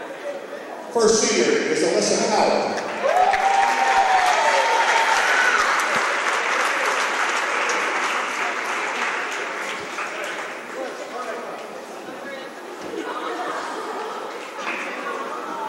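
A crowd cheers and applauds in a large echoing gym.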